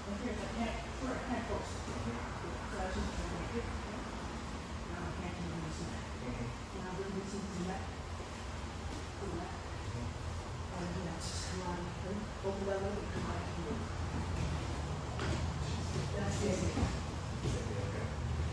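Bodies thump and shuffle on floor mats.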